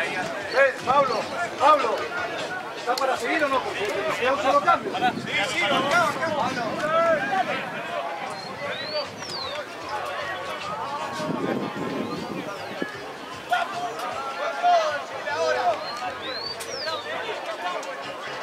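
Spectators nearby talk and call out outdoors.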